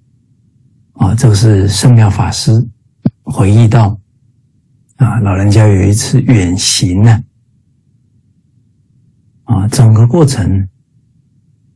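A middle-aged man speaks calmly through an online call, in short phrases with pauses.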